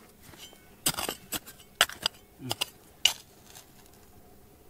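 Loose pebbles and soil scatter and rattle.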